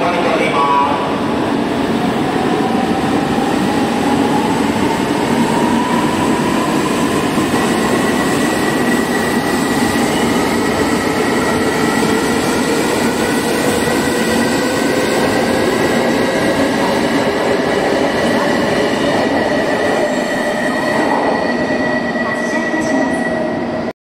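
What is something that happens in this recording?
A train's motors whine, rising steadily in pitch.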